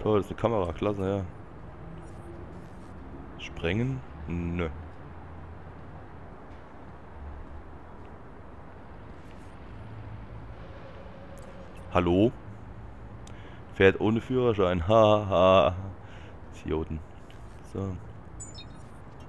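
Footsteps walk on pavement.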